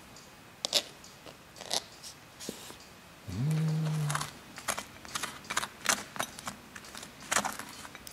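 A knife scrapes butter across a waffle.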